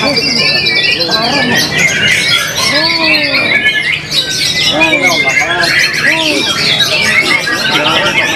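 A songbird sings loud, quick whistles and chirps close by.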